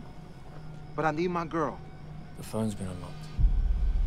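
A man speaks in a low, calm voice close by.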